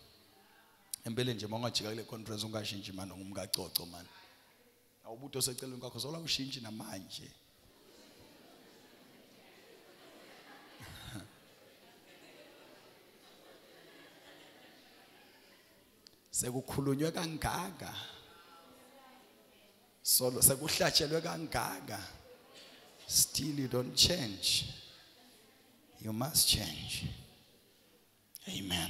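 A man preaches with animation through a microphone in an echoing hall, pausing between phrases.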